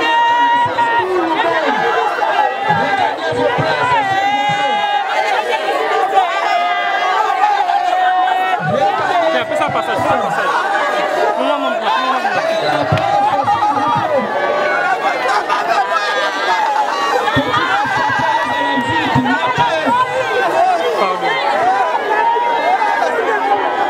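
Women wail and cry loudly close by.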